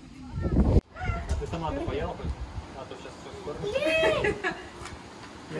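Young children talk and squeal excitedly nearby.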